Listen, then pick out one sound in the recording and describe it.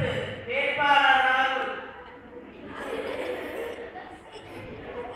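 A man sings loudly through a microphone in a room with some echo.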